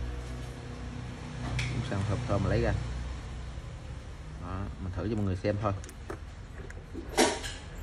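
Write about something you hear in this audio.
Plastic parts click softly as they are handled.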